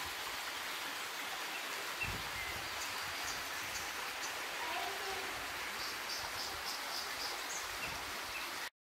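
A small stream rushes and splashes steadily over rocks.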